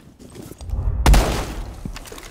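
A window smashes with a loud crash.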